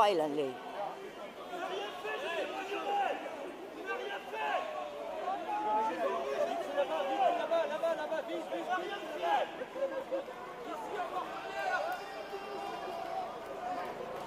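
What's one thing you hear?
A crowd of men and women talk and shout nearby.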